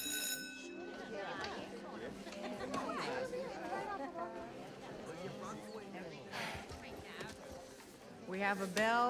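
Teenagers chatter and talk over one another nearby.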